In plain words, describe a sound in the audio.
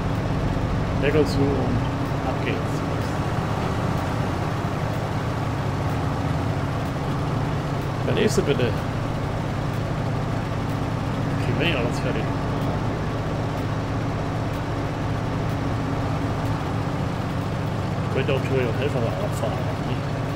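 A man speaks briefly now and then, close to a microphone.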